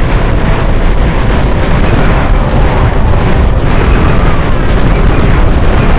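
Explosions and gunfire crackle in a battle.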